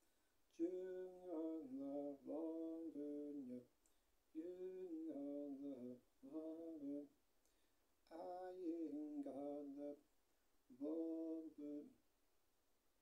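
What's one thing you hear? A young man sings close by in short held phrases.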